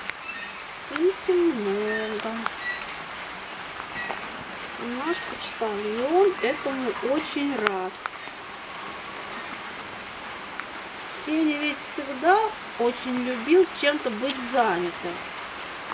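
A middle-aged woman speaks calmly outdoors, close by.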